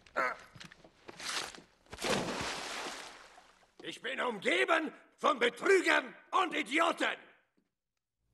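A man speaks calmly, close by.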